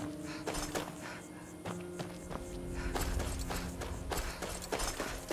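Footsteps crunch steadily over dry leaves and dirt.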